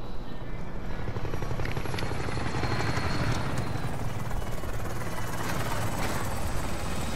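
A helicopter's rotor thumps overhead, growing louder.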